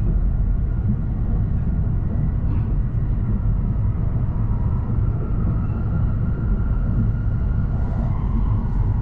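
A train rumbles steadily along the tracks from inside a carriage.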